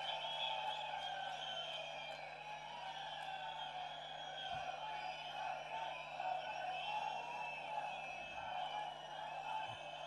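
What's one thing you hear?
A large crowd cheers and chants loudly.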